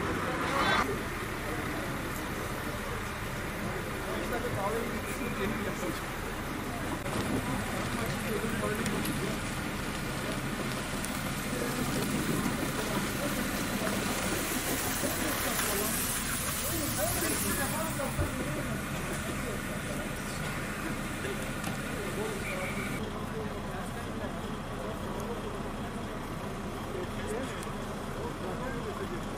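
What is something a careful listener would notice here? Engines idle with a low rumble outdoors.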